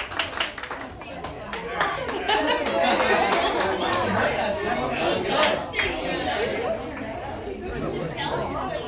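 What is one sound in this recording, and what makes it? A crowd of men and women chatters loudly.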